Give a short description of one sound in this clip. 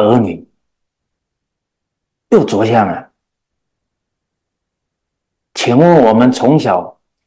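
A middle-aged man speaks calmly and earnestly into a microphone, with pauses.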